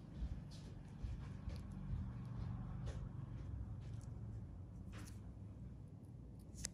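A metal needle scrapes and clicks softly against skin, close up.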